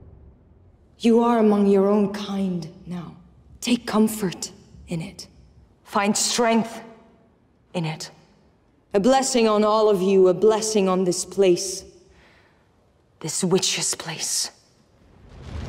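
A woman addresses a crowd in a firm, commanding voice.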